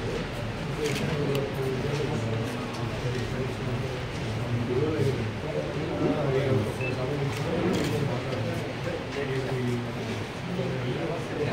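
A man talks on a phone nearby.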